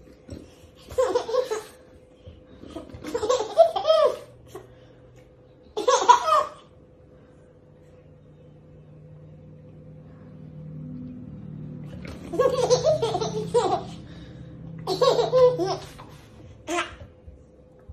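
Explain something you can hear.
A baby giggles and squeals with laughter close by.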